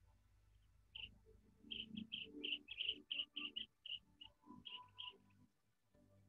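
Ducks whistle and peep in quick, repeated calls.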